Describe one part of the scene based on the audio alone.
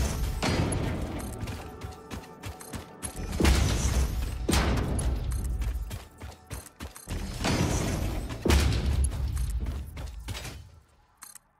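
Building pieces snap into place with crackling, sparkling bursts.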